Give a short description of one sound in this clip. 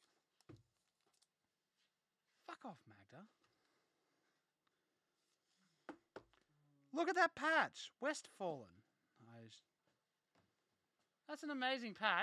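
A plastic card case clicks and rustles in hands.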